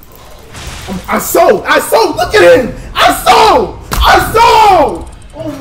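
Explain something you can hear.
A young man shouts and yells loudly into a microphone.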